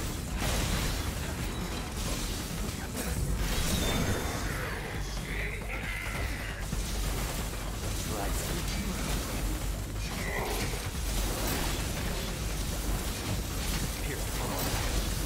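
A man talks through a close microphone.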